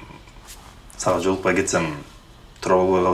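A young woman talks softly, close by.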